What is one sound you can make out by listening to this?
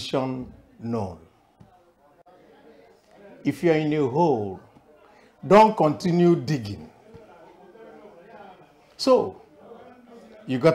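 A middle-aged man speaks with animation in short bursts, close to a microphone.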